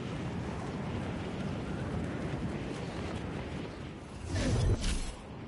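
Wind rushes steadily during a fast fall through the air.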